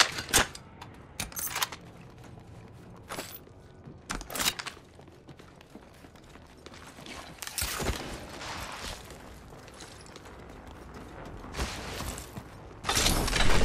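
Footsteps clatter on a metal floor.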